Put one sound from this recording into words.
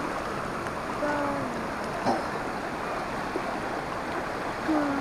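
A man calls out briefly nearby, outdoors.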